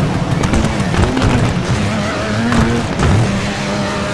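A car bangs and scrapes against a wall.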